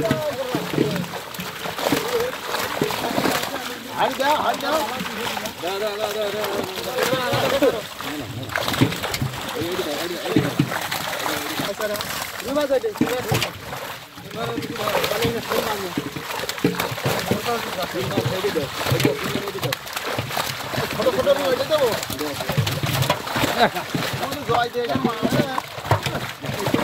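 Live fish thrash and splash in a net in shallow water.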